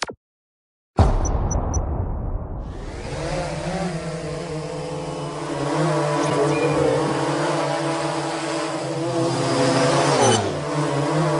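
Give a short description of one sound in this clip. A drone's propellers whir with a steady buzzing hum.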